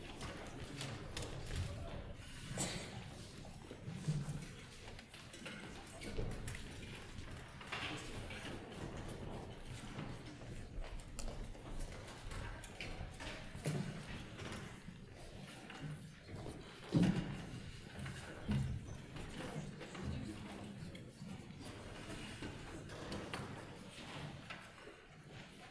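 Young men and women chatter with each other in a large echoing hall.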